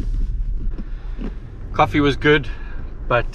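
A man speaks cheerfully close by.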